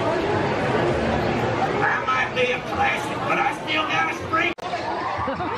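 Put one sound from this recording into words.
A man speaks through a loudspeaker with animation.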